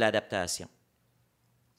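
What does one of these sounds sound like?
A man speaks through a microphone in a calm, lecturing voice.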